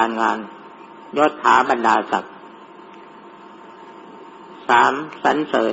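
An elderly man speaks calmly in short phrases with pauses.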